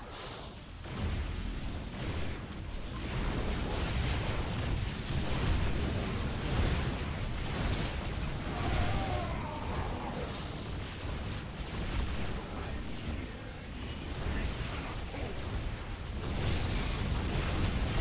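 Laser weapons zap and blast in a busy battle.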